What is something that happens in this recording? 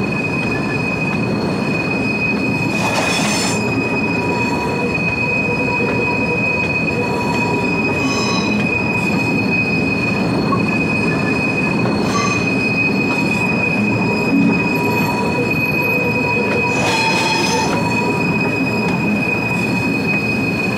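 A train engine hums steadily as the train rolls slowly.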